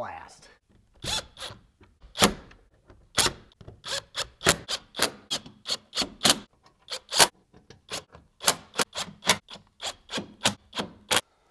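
A cordless driver gives short, sharp clicks again and again.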